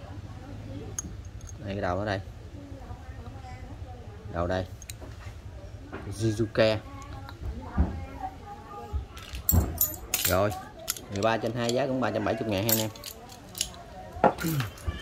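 Metal hex keys clink together in a hand.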